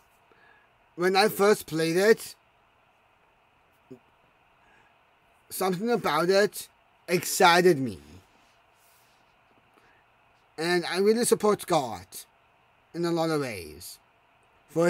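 A young man speaks close to a microphone in short bursts with pauses.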